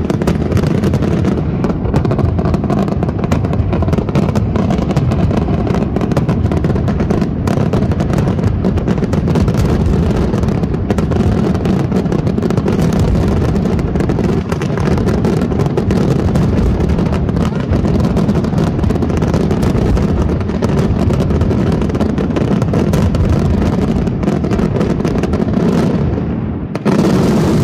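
Fireworks fizz and hiss as sparks burst.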